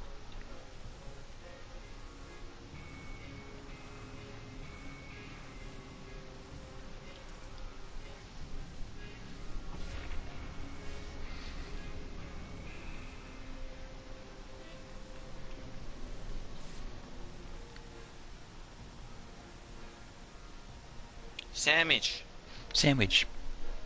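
A man talks quietly into a microphone.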